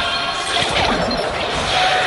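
Sword slashes whoosh and ring.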